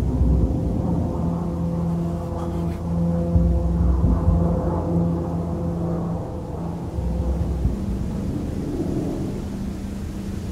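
A propeller plane drones steadily overhead.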